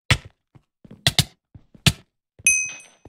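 A sword strikes a player with sharp hits.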